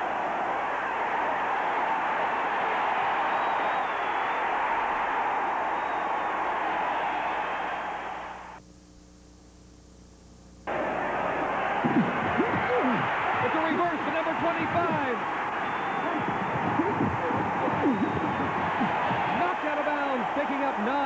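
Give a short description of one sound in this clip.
A large stadium crowd roars.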